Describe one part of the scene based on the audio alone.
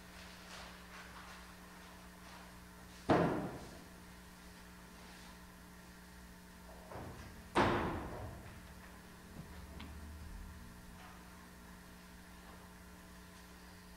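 Footsteps and soft knocks echo through a large, quiet hall.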